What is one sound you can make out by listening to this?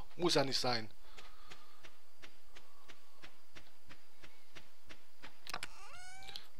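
Quick footsteps patter on a dirt path.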